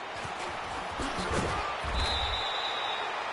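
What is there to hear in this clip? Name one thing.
Football players crash together in a tackle.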